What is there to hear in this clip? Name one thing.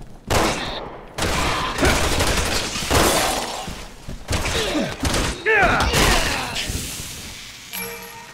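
Gunshots ring out.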